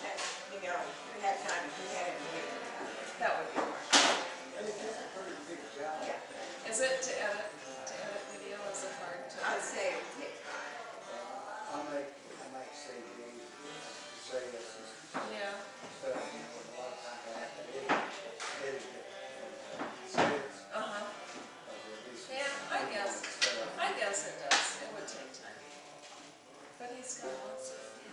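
Several men talk casually nearby in a room.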